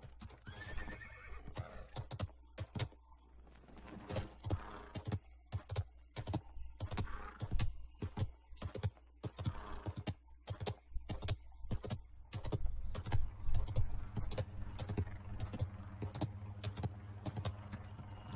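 A horse's hooves gallop in a steady rhythm.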